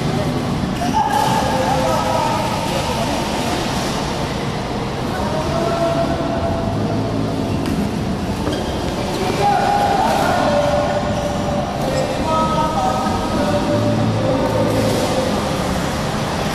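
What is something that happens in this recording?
Men call out to each other across the court.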